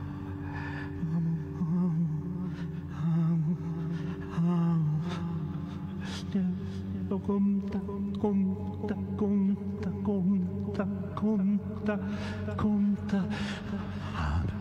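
A man blows a harmonica in short, wailing bursts.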